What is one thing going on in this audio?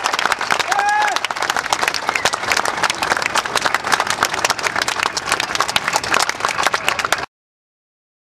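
A crowd claps loudly outdoors.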